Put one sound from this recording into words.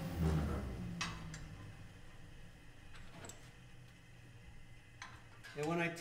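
Metal parts clink against a metal bench.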